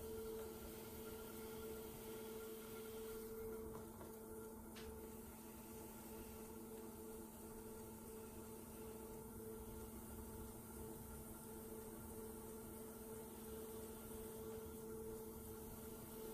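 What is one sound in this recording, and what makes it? A trimming tool scrapes clay on a spinning pot.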